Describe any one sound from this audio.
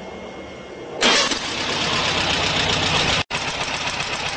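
A car engine runs at idle.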